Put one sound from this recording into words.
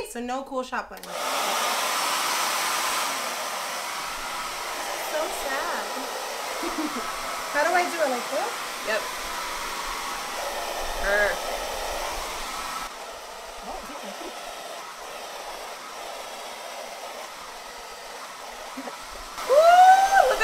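A hair dryer blows with a steady whoosh.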